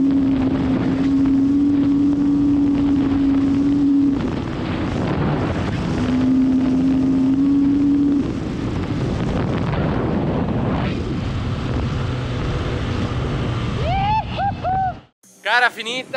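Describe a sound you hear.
A dirt bike engine roars at speed.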